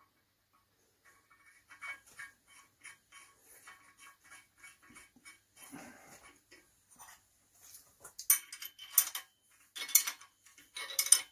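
A ratchet wrench clicks rapidly on a bolt.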